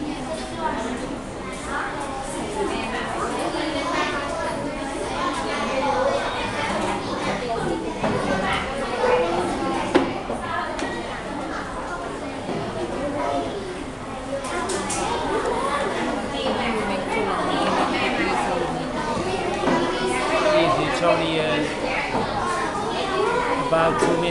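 Children chatter all around in an echoing room.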